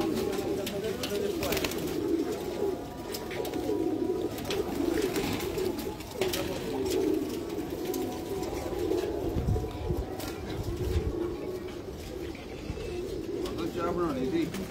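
Pigeons coo softly and steadily close by.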